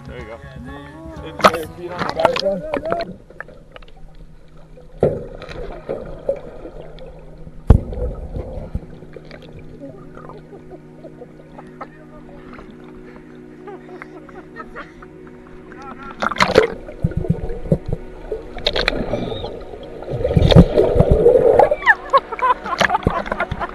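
Water splashes and sloshes against a metal cage.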